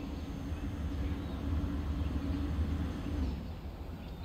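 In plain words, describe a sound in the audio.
A train rumbles along the tracks with a low engine hum.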